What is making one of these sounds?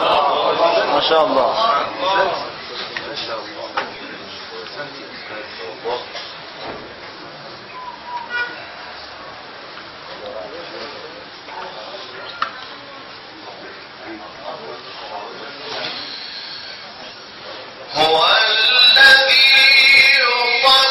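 A young man chants melodically through a microphone.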